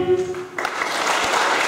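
A choir holds a final sung note that cuts off.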